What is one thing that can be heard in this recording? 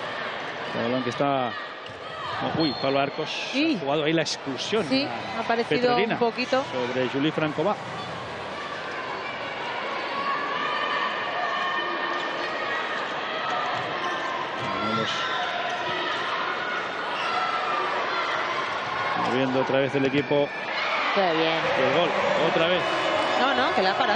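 A large crowd cheers and chants in a big echoing arena.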